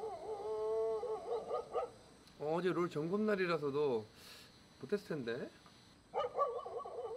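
A dog howls and whines close by.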